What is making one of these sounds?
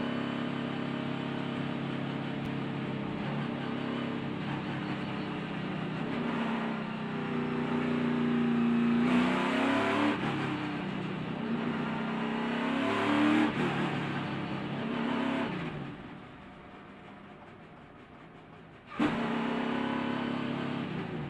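A race car engine roars loudly at high speed, its pitch rising and falling.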